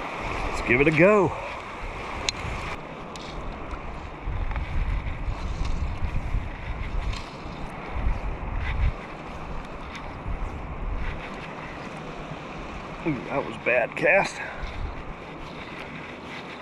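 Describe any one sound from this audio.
Small waves lap gently around someone wading.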